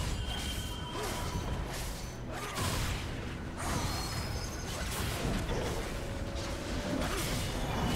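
Game battle effects clash and crackle.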